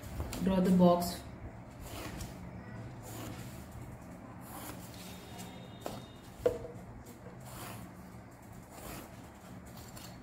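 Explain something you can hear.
A ruler taps and slides on paper.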